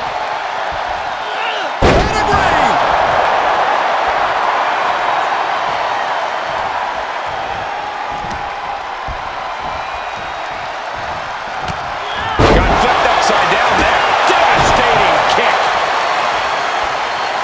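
A crowd cheers loudly throughout.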